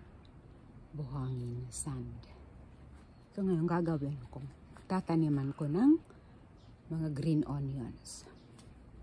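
A middle-aged woman speaks calmly close by.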